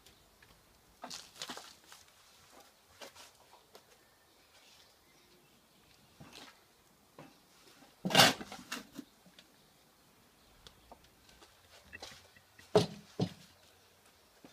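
A shovel scrapes and drops soil into a wooden planter.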